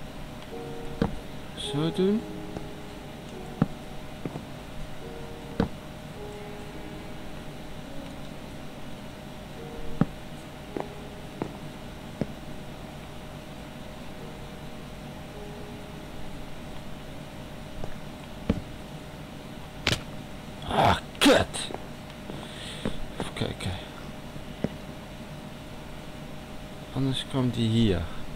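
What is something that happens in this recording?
Wooden blocks thud softly as they are placed one after another.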